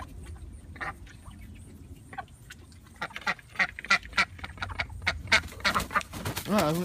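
Ducks quack in short, rapid bursts.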